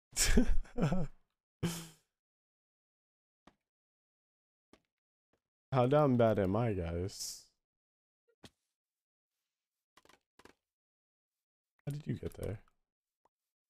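A young man talks with animation into a close microphone, in short bursts.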